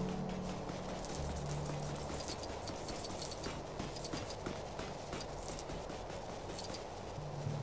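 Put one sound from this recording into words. Coins clink and jingle as they are collected.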